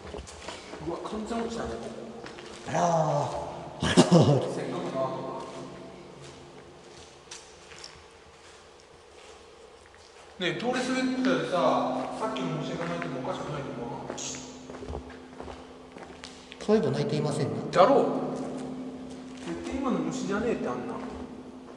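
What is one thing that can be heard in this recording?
A man talks with animation in an echoing tunnel.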